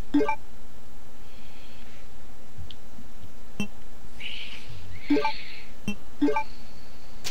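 Short electronic menu blips sound now and then.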